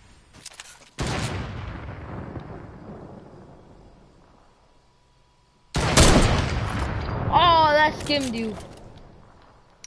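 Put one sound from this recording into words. A sniper rifle fires with a loud crack that rolls away in a long echo.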